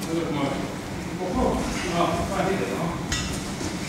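A man talks nearby in an echoing room.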